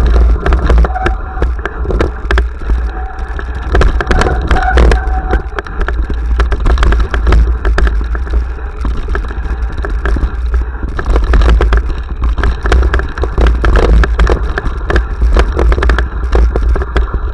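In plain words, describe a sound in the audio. Wind buffets a microphone with a steady low roar.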